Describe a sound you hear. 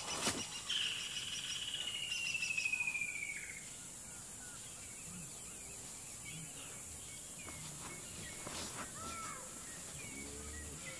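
An elephant tears and rustles leafy branches while feeding.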